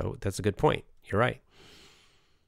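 An older man speaks calmly and close into a microphone.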